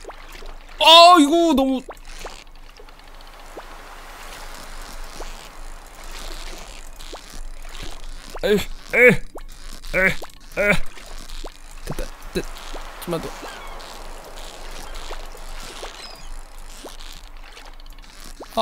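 A fishing reel clicks and whirs as a line is reeled in.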